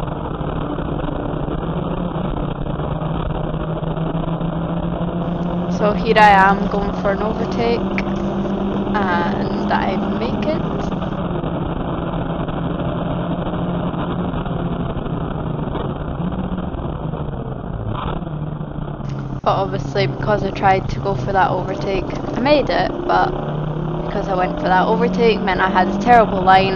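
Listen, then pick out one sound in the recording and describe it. A race car engine drones loudly from inside the cabin, rising and falling as the car speeds up and slows down.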